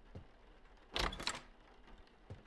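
A door creaks open.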